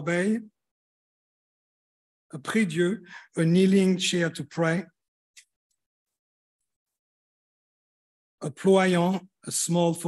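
An elderly man speaks calmly through an online call microphone, with pauses.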